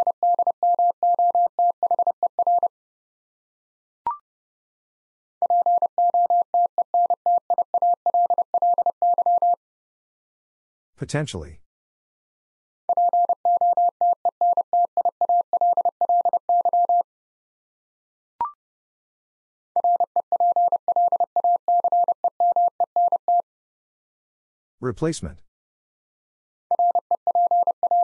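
Morse code beeps out rapidly in a steady, high tone.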